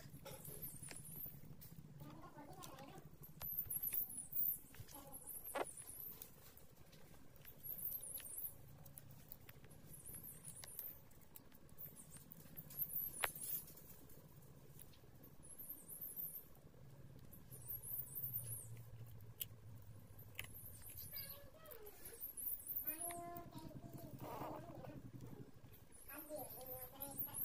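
Puppies sniff and snuffle at the ground close by.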